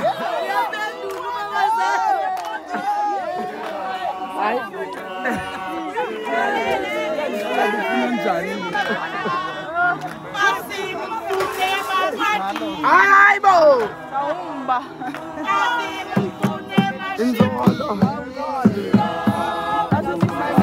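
A crowd of men and women chatters and calls out close by, outdoors.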